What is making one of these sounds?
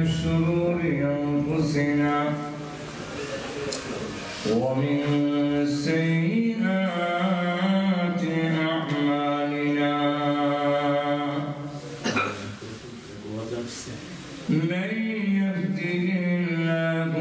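A man recites in a slow, melodic chant into a microphone, heard through a loudspeaker with some echo.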